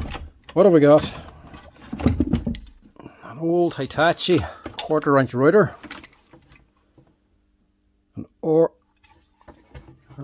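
Power tools clunk and rattle against each other in a wooden box.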